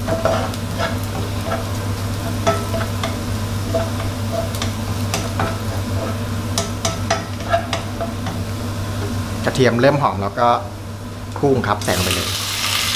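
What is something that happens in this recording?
Minced garlic sizzles gently in oil in a frying pan.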